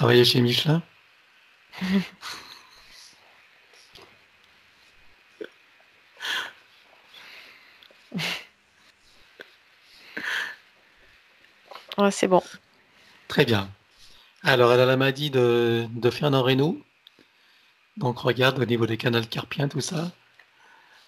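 A man speaks with animation through a headset microphone over an online call.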